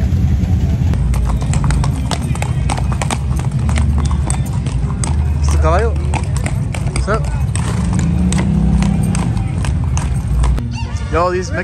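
Horse hooves clop on pavement.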